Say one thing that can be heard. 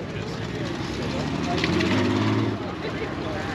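A motorcycle engine rumbles as it rides past.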